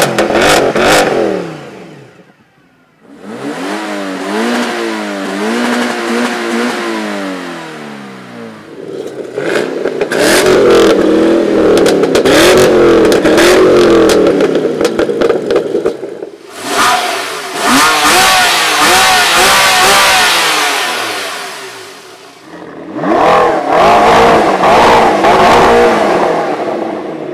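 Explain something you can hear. Powerful car engines rev loudly and roar in bursts, rising and falling in pitch.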